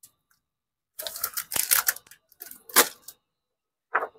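A foil bag crinkles and rustles in hands.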